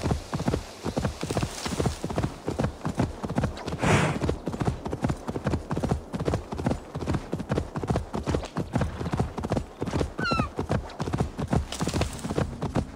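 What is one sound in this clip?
A horse gallops on soft ground with rapid, rhythmic hoofbeats.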